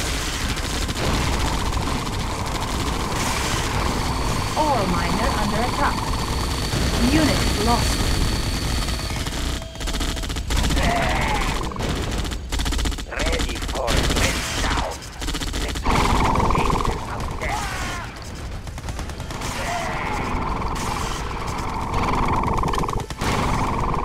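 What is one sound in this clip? Gunfire and explosions crackle from a battle.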